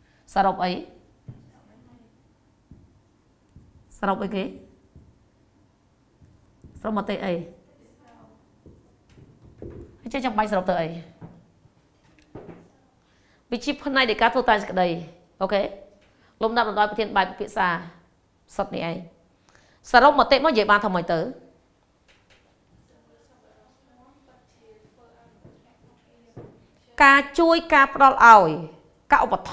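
A woman speaks calmly and clearly in short phrases with pauses.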